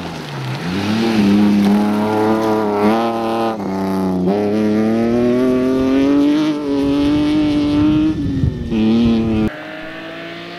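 A rally car engine roars loudly at high revs, shifting gears as it speeds past.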